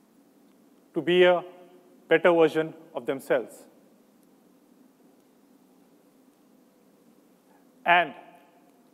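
A man speaks slowly and deliberately through a microphone, with long pauses.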